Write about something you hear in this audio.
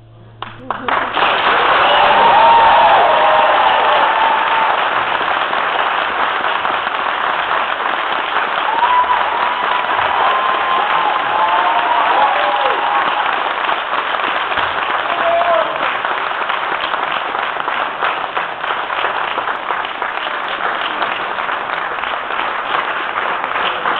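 Drums beat fast and loud in an echoing hall.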